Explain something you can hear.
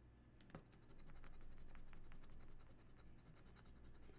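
A coin scrapes rapidly across a scratch card.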